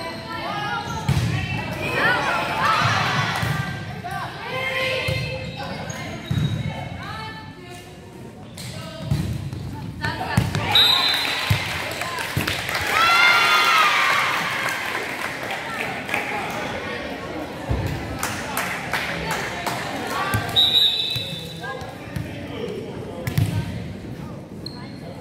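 A volleyball thuds against players' arms and hands.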